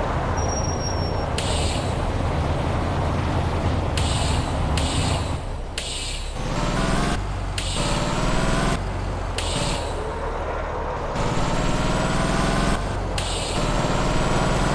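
A truck engine rumbles and revs as it drives.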